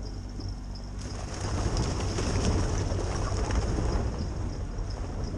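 Tyres splash through water and mud.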